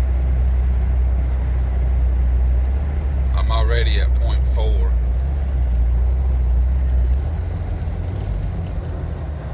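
Tyres roll on asphalt under a Jeep Wrangler.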